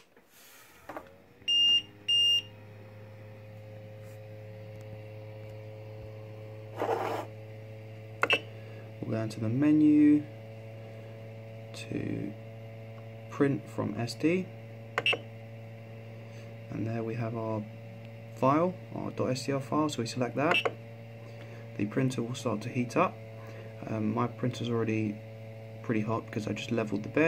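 A machine's fan hums steadily.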